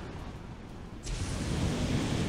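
A flamethrower roars in a burst.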